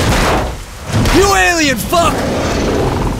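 A monster lets out a loud, wavering roar.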